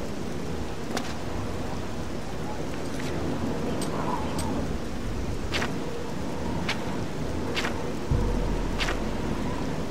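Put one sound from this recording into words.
Short menu clicks sound as pages are flipped.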